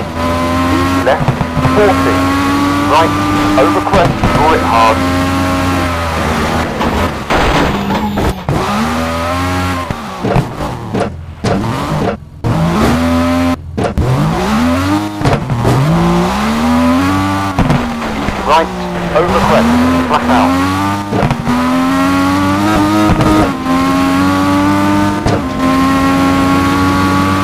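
Tyres crunch and skid on gravel.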